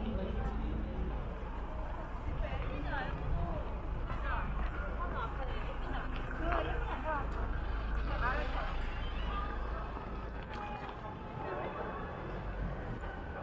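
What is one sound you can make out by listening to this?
A crowd of men and women chatter nearby on a busy street.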